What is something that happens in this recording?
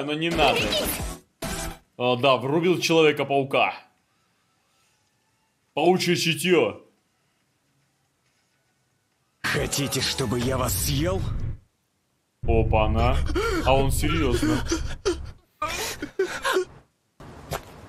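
A man talks with animation close to a microphone, in bursts with pauses.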